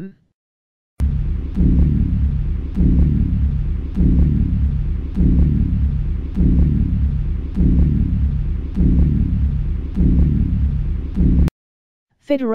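A spaceship engine hums with a deep, pulsing rumble.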